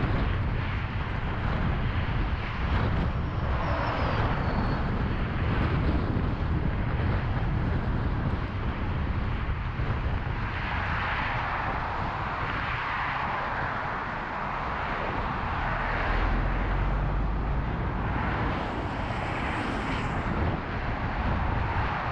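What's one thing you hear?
Road noise rumbles steadily from inside a moving car.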